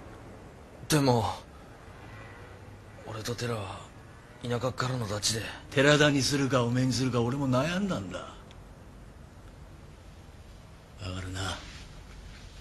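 A man speaks softly and closely in a low voice.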